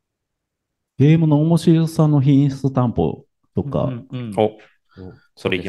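A second man answers into a microphone with animation.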